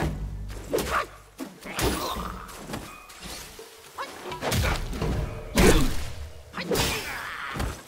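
A staff strikes a target with heavy thuds.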